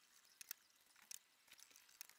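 A spot welder snaps sharply against metal.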